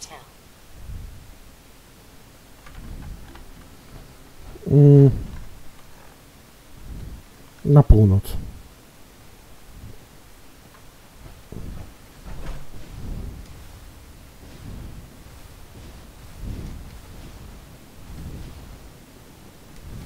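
Heavy metal footsteps thud slowly and steadily.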